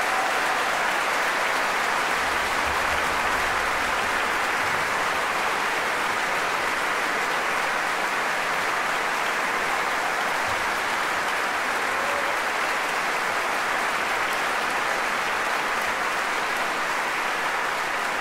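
A large audience applauds steadily in a big echoing hall.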